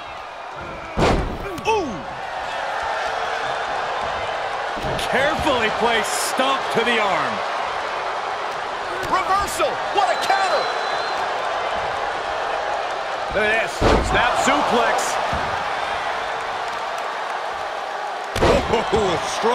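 Bodies slam hard onto a wrestling mat.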